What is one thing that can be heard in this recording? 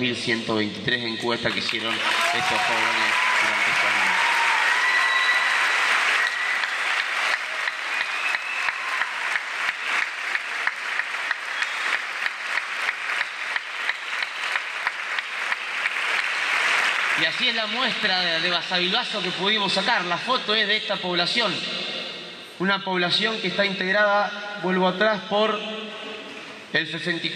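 A young man speaks with animation in a large echoing hall.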